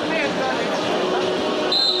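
A young man speaks into a microphone over loudspeakers in an echoing hall.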